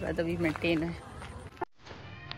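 A young woman speaks cheerfully outdoors, close by.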